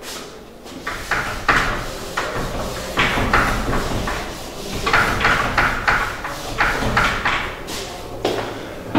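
A duster rubs across a whiteboard in quick strokes.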